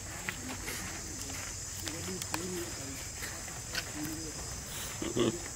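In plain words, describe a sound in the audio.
A baby monkey squeaks and whimpers softly, close by.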